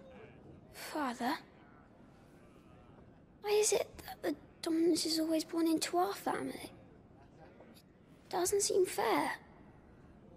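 A young boy speaks softly and questioningly.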